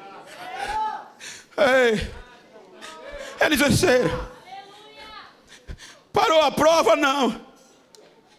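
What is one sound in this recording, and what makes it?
A man preaches forcefully into a microphone over loudspeakers in a large echoing hall.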